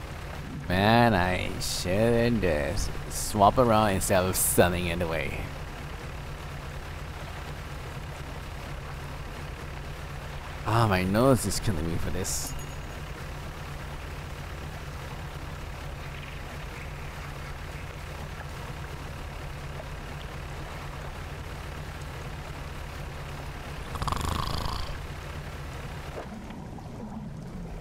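A ship's engine hums low and steady.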